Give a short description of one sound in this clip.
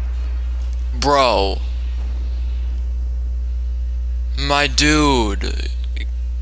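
A huge beast roars loudly twice.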